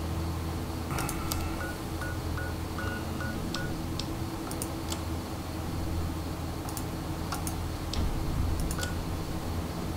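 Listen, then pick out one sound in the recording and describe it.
A game menu clicks as its tabs and pages change.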